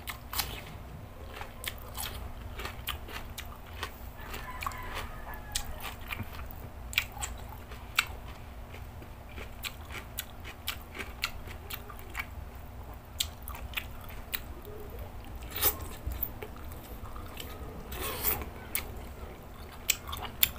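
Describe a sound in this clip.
A man chews and slurps food noisily close to a microphone.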